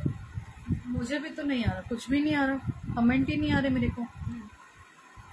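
A young woman speaks softly close to the microphone.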